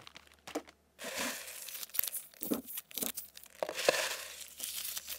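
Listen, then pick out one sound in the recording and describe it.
Fingers tap and scratch on a box close to a microphone.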